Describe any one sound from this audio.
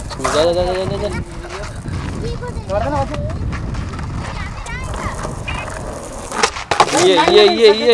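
Skateboard wheels roll on asphalt.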